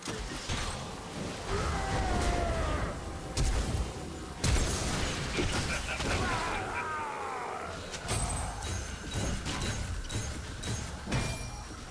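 Game weapons strike with sharp hits.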